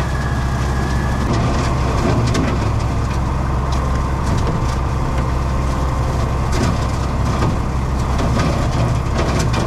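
A mower blade chops through dry brush with crackling snaps.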